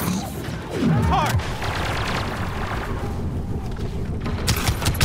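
A blaster rifle fires sharp shots.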